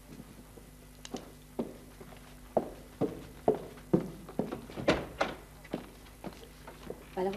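A woman's heels knock steadily on a hard floor.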